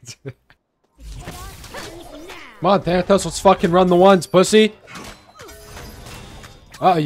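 Magical spells whoosh and crackle in a fast fight.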